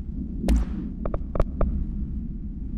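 Soft interface clicks tick a few times in quick succession.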